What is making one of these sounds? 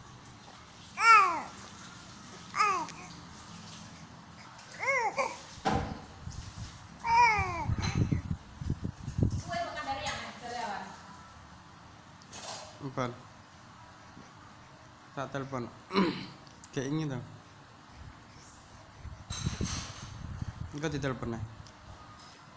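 A baby coos and squeals in short bursts close by.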